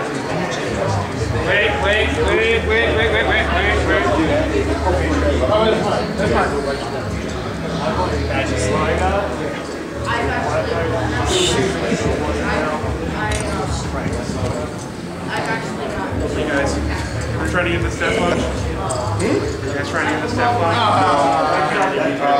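Several people talk and chatter nearby with animation, in a large echoing hall.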